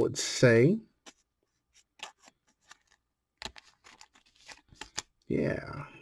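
A card rustles and crinkles against a plastic sleeve close by.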